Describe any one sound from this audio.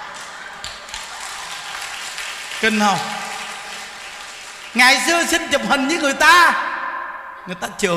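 Hands clap in a crowd.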